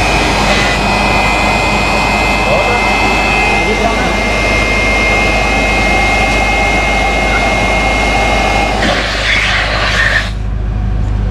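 An electric air pump whirs loudly.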